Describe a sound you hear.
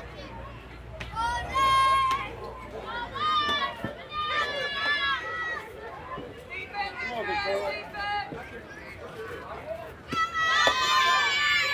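Young girls shout and cheer in high voices.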